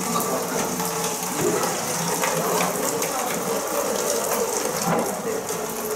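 Water runs from a tap into a pot.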